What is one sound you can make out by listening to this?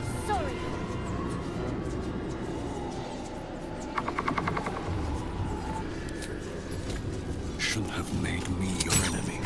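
A low magical hum drones steadily.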